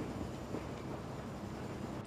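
Steam hisses from a train engine.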